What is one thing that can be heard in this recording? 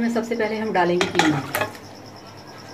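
Minced meat slides from a plate and drops into a metal pot.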